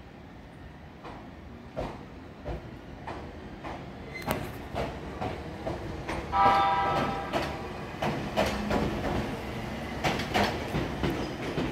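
A train rolls past, its wheels clicking over rail joints.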